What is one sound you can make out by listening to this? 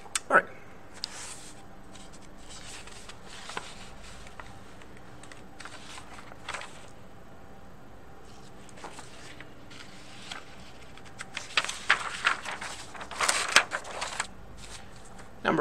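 Paper rustles as it is moved about.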